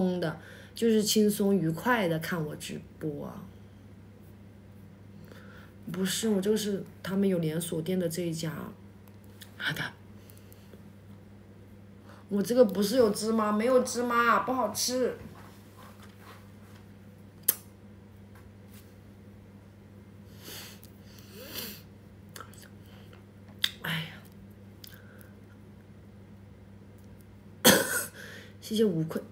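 A young woman speaks close to the microphone in short bursts with pauses.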